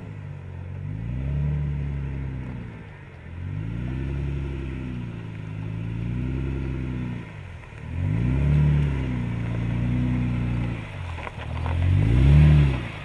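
An engine revs up and down as an off-road vehicle crawls slowly over rock.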